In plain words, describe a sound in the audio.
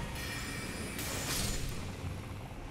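A magical blast crackles and roars.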